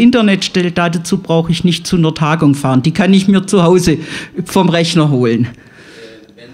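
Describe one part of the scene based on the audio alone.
An elderly woman speaks with animation into a close microphone.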